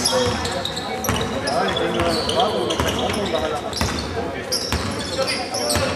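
Young players call out to each other across the hall.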